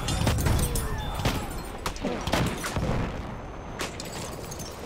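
Rifle shots crack in sharp bursts.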